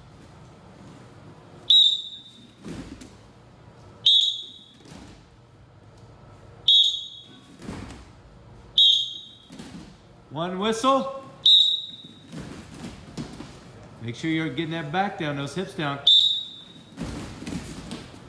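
Bodies thump onto a mat as several people drop to the floor.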